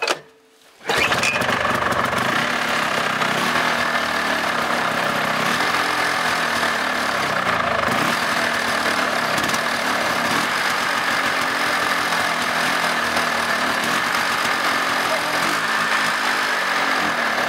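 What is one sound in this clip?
A small engine sputters and starts, then runs loudly and steadily.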